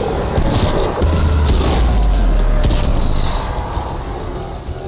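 A deep explosion booms and rumbles.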